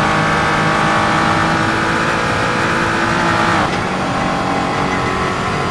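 A race car engine roars at high revs, climbing steadily in pitch.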